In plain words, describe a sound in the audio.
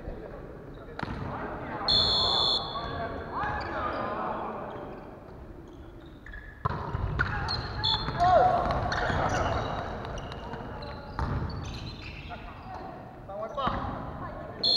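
A volleyball thuds off players' hands and arms in a large echoing hall.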